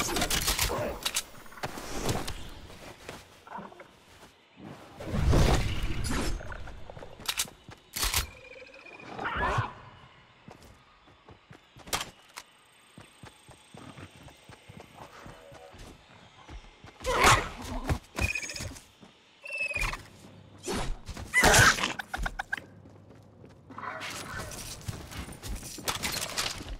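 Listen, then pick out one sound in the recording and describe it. Footsteps patter on grass and then on a wooden floor.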